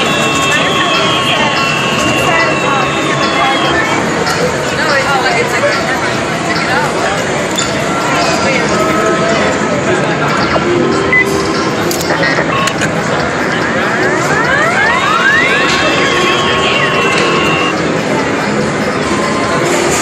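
Electronic arcade game jingles and beeps play loudly.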